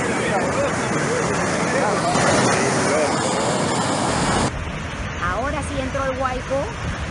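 Muddy water rushes and gushes loudly.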